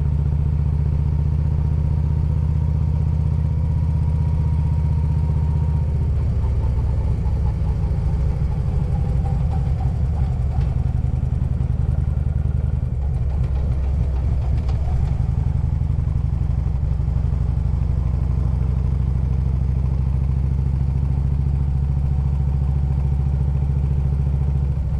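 A motorcycle engine rumbles steadily close by, its pitch shifting as it slows and speeds up through curves.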